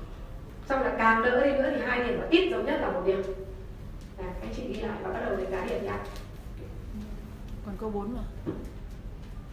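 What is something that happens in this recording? A woman speaks to an audience in a room with a slight echo.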